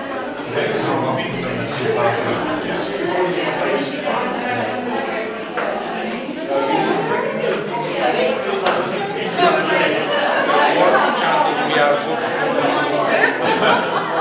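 A crowd of adults chatters.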